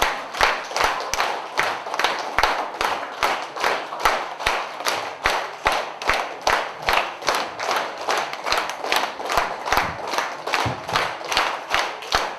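A group of children claps hands in a steady fast rhythm in an echoing hall.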